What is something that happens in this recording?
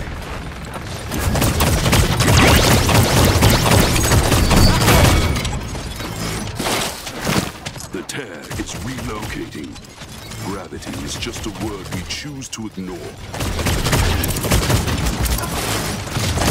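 Energy pistols fire rapid zapping shots.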